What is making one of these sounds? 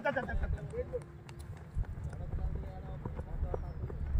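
A cricket bat strikes a ball with a sharp knock.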